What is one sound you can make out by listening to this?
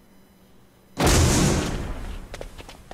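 A man punches another man with a heavy thud.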